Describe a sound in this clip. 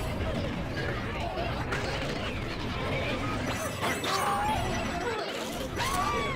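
Upbeat video game music plays throughout.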